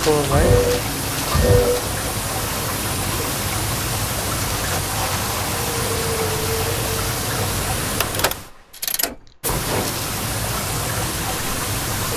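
Water gushes and sprays with a steady rushing hiss.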